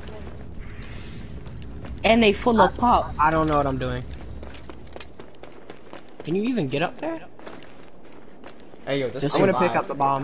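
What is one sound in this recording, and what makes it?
Footsteps run across hard ground.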